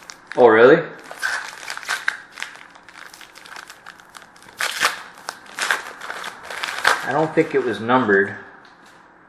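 Plastic wrapping crinkles and tears.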